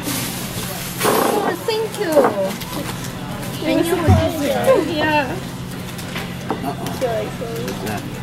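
An adult man and woman chat casually close by.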